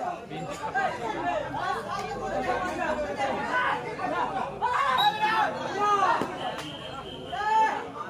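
A crowd of young men shouts and cheers outdoors.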